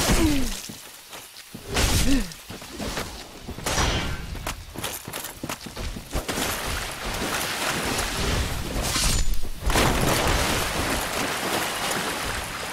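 Armoured footsteps thud on wet ground.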